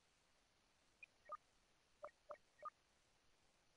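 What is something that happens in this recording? Short electronic beeps sound as menu options are selected.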